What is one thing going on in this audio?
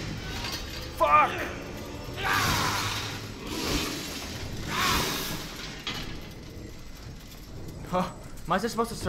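A young man speaks with animation into a microphone, close by.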